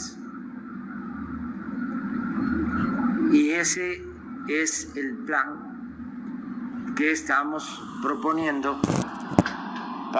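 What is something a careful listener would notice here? An elderly man speaks calmly into a microphone, heard outdoors through loudspeakers.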